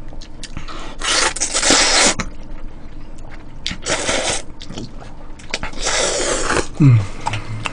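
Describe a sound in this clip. A man slurps noodles loudly, close by.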